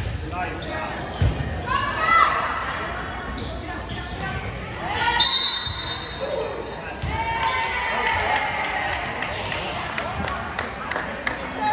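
Young women call out and shout to each other on the court.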